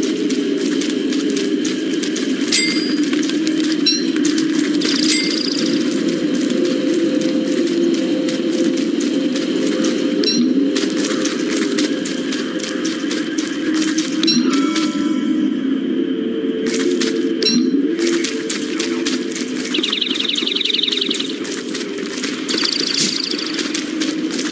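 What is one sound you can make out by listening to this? Footsteps patter steadily across the ground.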